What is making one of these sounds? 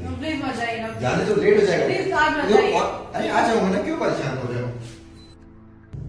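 A young woman speaks pleadingly close by.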